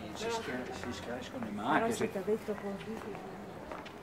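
A man talks close by as he walks past.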